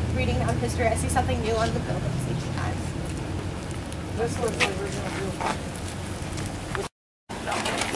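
A young woman speaks calmly outdoors, explaining.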